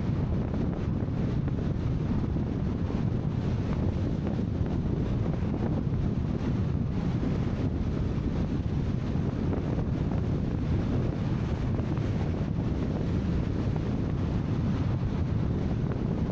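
Tyres rumble steadily on asphalt.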